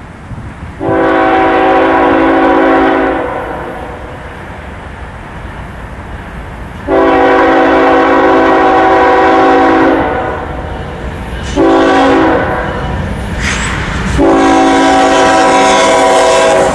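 A diesel freight locomotive sounds its air horn in long and short blasts.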